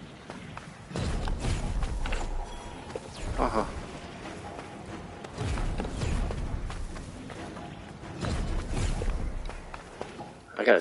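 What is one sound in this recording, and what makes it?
Loud fiery explosions boom and roar.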